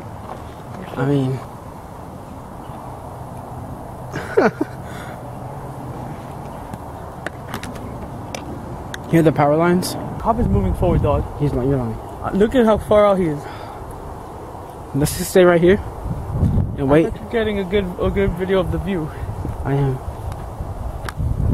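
A teenage boy talks casually, close by.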